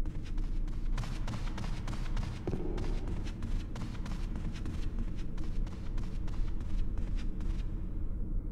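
Footsteps thud steadily on wooden stairs.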